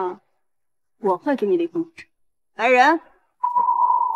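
A young woman speaks sharply and close by.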